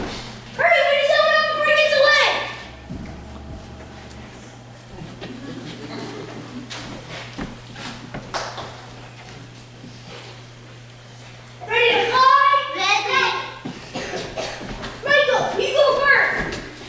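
Children speak and call out loudly in a large echoing hall.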